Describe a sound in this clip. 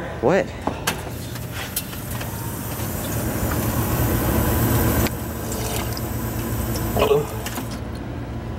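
Water from a drinking fountain trickles and splashes.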